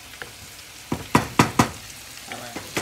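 A wooden spoon clatters down onto a hard surface.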